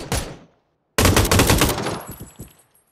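A light machine gun fires a rapid burst.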